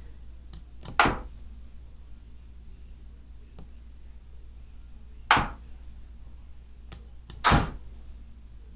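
Short clicks sound as chess pieces are moved.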